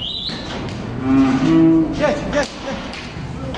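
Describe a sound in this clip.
A cow moos nearby.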